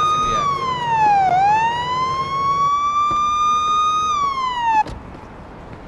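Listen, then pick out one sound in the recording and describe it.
A police siren wails, sliding down and up in pitch, then cuts off.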